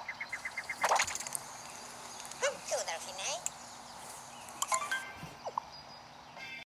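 Video game sound effects chime and blip from a small speaker.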